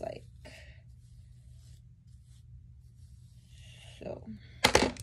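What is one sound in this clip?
Hair rustles as a young woman brushes it.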